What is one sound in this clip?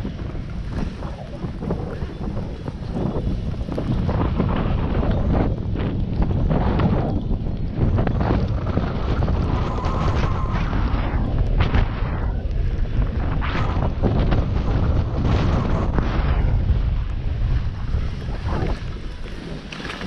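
Skis hiss and swish through deep powder snow.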